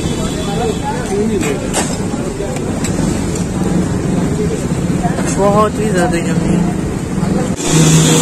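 A metal spoon clinks against a metal bowl.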